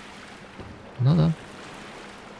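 A young man speaks briefly and loudly into a close microphone.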